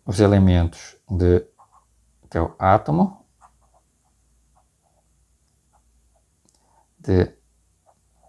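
A man speaks calmly and haltingly into a close microphone.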